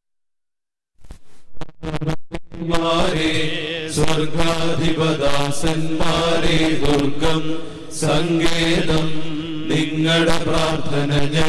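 A man chants a prayer through a microphone in a large echoing hall.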